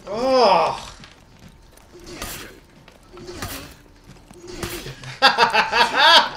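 A man exclaims excitedly close to a microphone.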